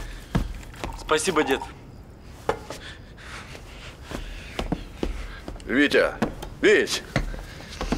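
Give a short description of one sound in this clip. A middle-aged man speaks in short phrases.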